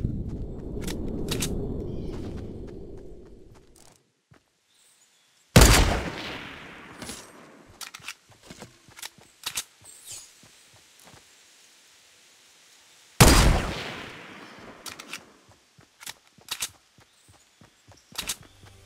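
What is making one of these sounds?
Footsteps run across grass and pavement.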